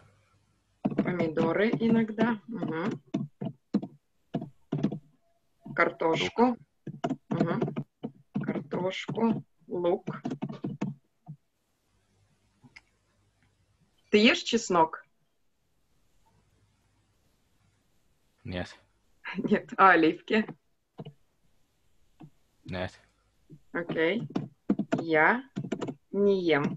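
A young woman speaks calmly and clearly, heard through an online call.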